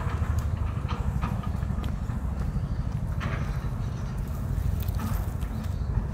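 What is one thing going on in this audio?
A bicycle rolls past on a paved path.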